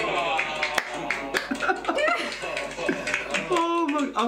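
A man laughs softly close by.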